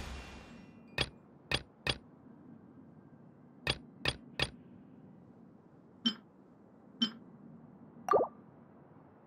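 Short soft clicks sound one after another.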